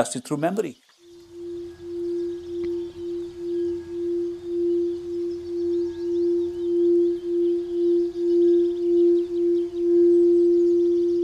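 A singing bowl rings with a steady, pulsing hum as a mallet circles its rim.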